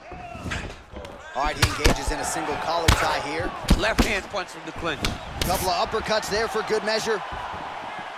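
Punches thud against a body in quick bursts.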